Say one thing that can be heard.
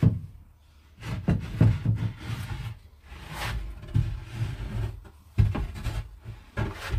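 Wooden boards knock and scrape as they are handled.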